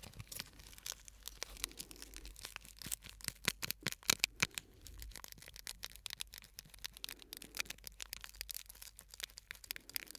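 Fingers tap and scratch on a hard plastic case close to a microphone, in quick crisp clicks.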